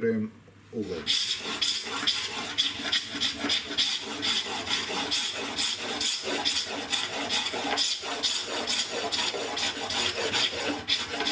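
A chisel scrapes rapidly across wood.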